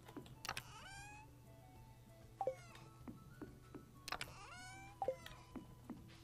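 A short chiming blip plays as a game menu opens and closes.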